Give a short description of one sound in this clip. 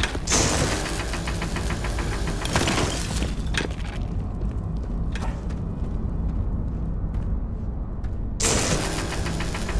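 A rapid-fire gun shoots in loud, echoing bursts.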